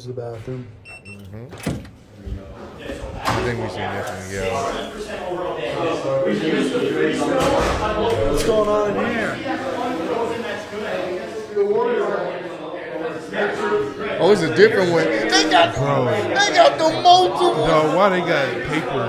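Two men talk and react with animation into microphones, close by.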